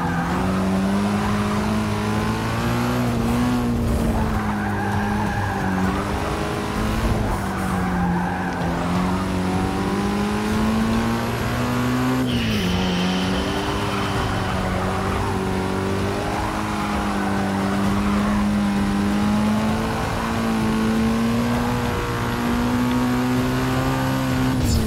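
A car engine roars steadily at high revs, its pitch dipping briefly at a gear change.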